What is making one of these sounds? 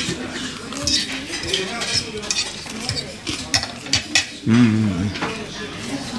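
A young man chews and munches on crispy food.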